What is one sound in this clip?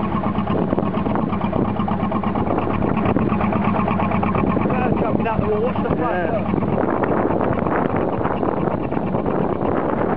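Water splashes and churns against a moving boat's hull.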